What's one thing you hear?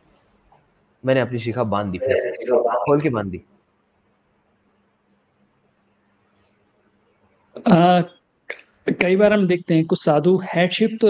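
A young man speaks with animation over an online call.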